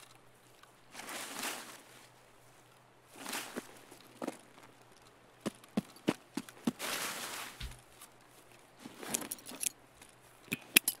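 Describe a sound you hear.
Footsteps rustle through grass and bushes.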